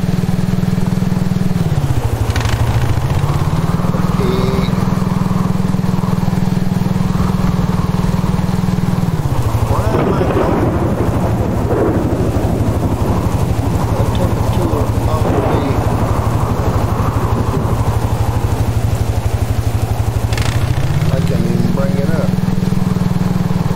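A quad bike engine drones steadily, its pitch dropping and rising with the throttle.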